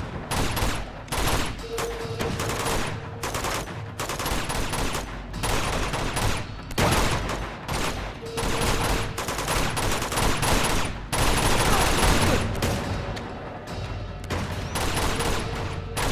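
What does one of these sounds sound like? Bullets smack into stone with sharp cracks.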